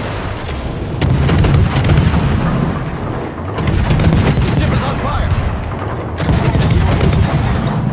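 Naval guns boom in rapid bursts.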